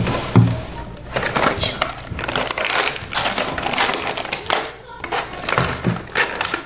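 A plastic container crinkles and rustles in a boy's hands.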